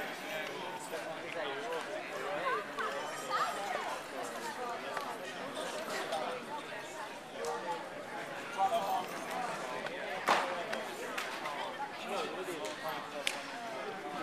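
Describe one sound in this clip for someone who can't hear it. Many people chatter throughout a large echoing hall.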